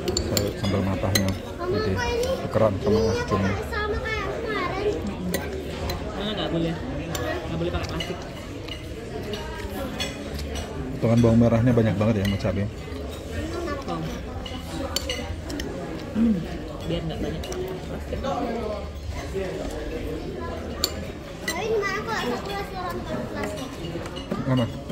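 A metal spoon scrapes and clinks against a ceramic bowl.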